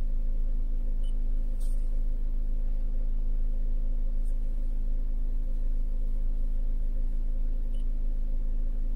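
A car touchscreen gives a short, soft beep when tapped.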